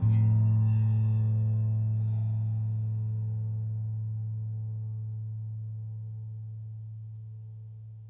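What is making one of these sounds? A keyboard chord rings and slowly fades.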